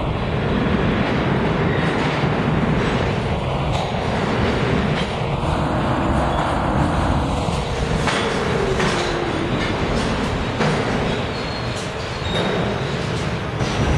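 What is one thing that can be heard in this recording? A subway train rumbles loudly into an echoing underground station.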